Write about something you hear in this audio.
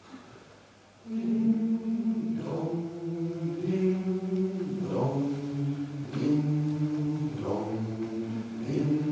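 A group of men sing together in harmony, close by.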